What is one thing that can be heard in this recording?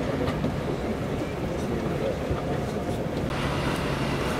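A train rumbles along the tracks in the distance.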